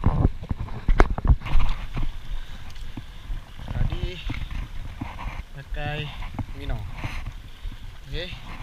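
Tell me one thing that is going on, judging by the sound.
Water laps and splashes gently close by.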